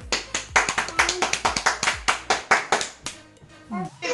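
Hands clap quickly and repeatedly.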